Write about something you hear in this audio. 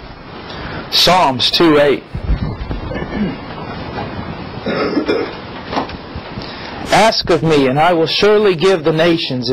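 A man speaks calmly and reads aloud into a close microphone.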